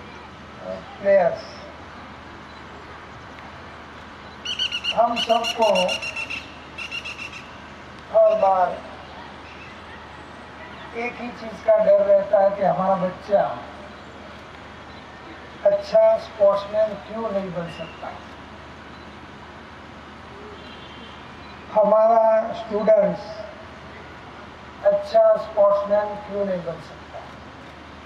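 A man speaks calmly through a microphone and loudspeaker, in short phrases with pauses.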